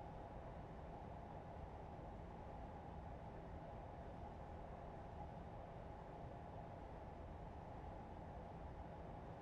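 A train engine hums steadily from inside the cab.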